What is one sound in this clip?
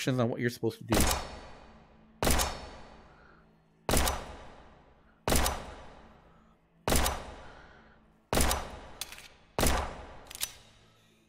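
A pistol fires sharp shots that echo in a large hall.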